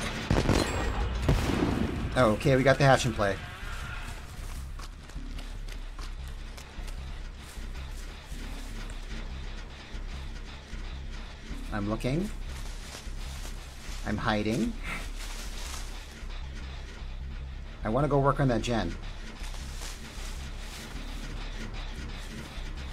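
Footsteps run through rustling tall grass.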